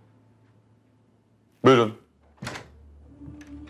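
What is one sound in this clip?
A man's footsteps sound on a wooden floor.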